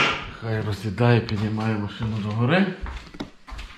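A young man talks calmly close to the microphone.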